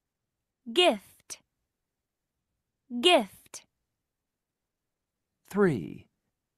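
A young woman speaks short words clearly over an online call, pausing between them.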